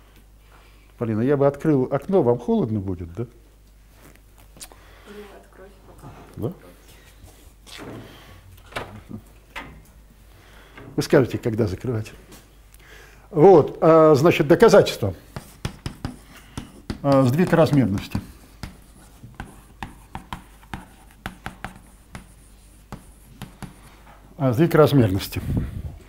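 An elderly man speaks calmly to a room, pausing between phrases.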